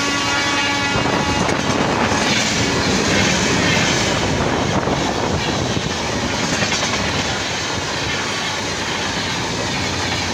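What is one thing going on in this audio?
A passenger train rushes past close by with a loud steady roar.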